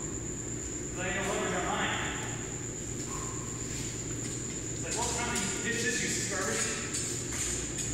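A man speaks from behind a mask nearby.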